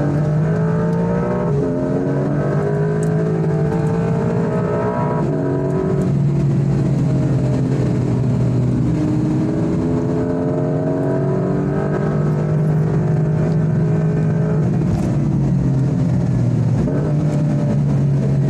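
Tyres hum on the road at speed.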